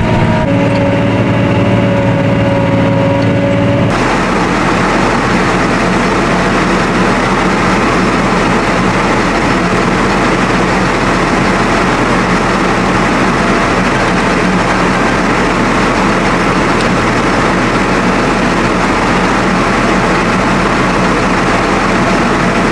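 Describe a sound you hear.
A tractor engine drones loudly and steadily.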